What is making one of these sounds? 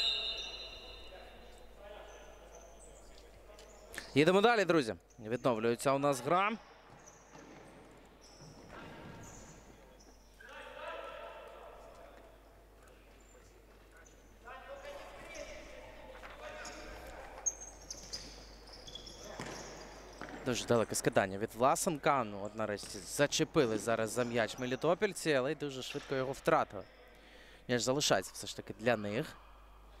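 A ball is kicked back and forth on a hard indoor court.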